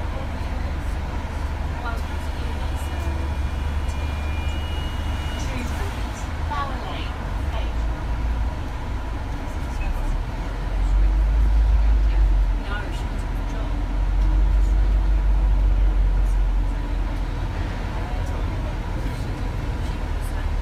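A bus engine rumbles low and steady, swelling louder at times.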